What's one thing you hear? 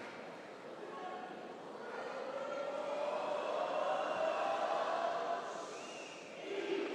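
A crowd cheers loudly.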